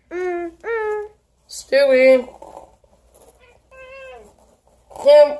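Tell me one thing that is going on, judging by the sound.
A cat meows repeatedly, close by.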